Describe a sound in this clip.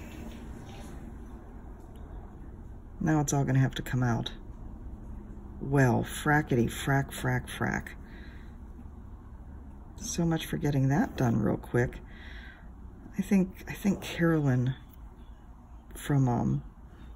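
A needle and thread pull softly through fabric.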